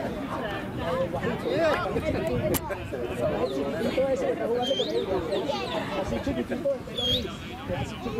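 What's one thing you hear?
Young men shout to each other across an outdoor field.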